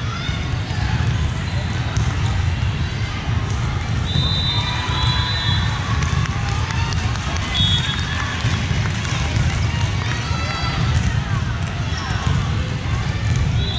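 Girls shout and call out to each other during play.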